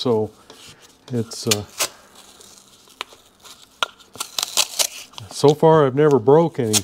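Masking tape crinkles as it is wrapped and pressed around a metal gauge housing.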